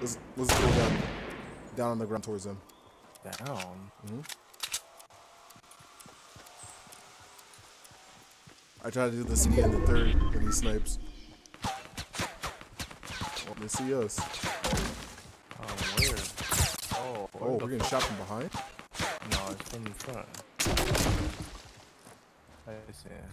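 A young man talks with animation into a close headset microphone.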